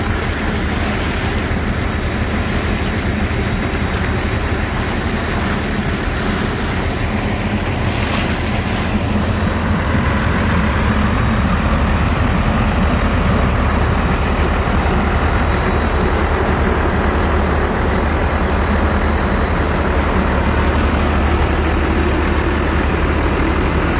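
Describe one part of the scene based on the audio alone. A diesel engine runs loudly and steadily.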